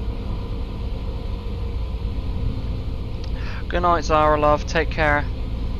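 A bus engine drones steadily while driving on a highway.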